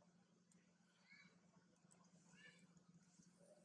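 A baby monkey squeaks softly nearby.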